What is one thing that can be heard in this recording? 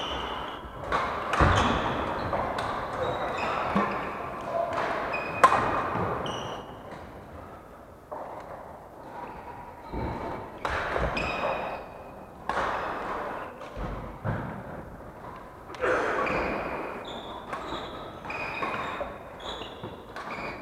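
Rackets smack shuttlecocks.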